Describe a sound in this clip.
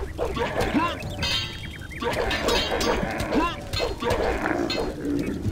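Steel blades clash and ring.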